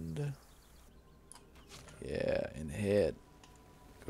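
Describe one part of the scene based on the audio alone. A bow shoots an arrow with a twang.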